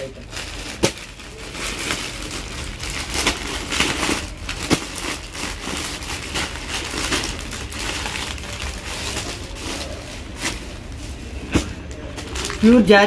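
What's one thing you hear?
Plastic wrapping rustles and crinkles as packets of cloth are handled.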